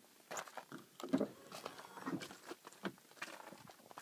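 A truck door clicks open.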